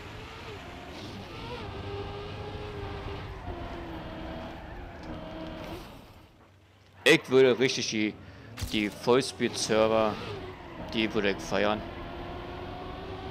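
A race car engine hums steadily and rises and falls in pitch as the car speeds along.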